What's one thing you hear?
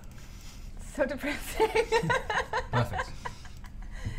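A young man laughs, close to a microphone.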